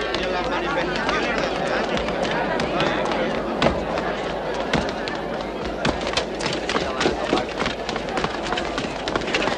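A crowd of people talks and shouts nearby.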